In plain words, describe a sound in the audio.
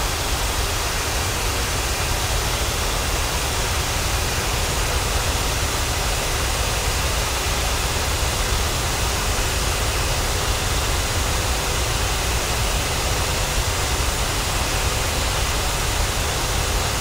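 The turbofan engines of a jet airliner roar steadily in cruise.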